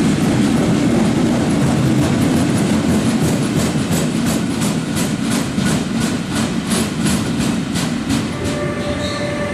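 A freight train rumbles past, its wheels clattering rhythmically over rail joints.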